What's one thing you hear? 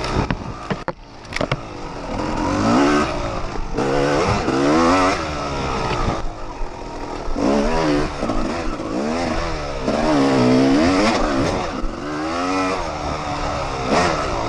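Knobby tyres thump and rattle over a muddy dirt trail.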